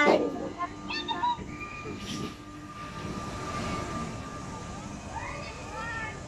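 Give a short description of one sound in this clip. Riders on a spinning fairground ride scream in the distance.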